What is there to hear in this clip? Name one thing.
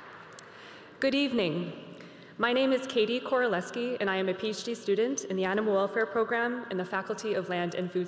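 A young woman speaks calmly into a microphone in a large echoing hall.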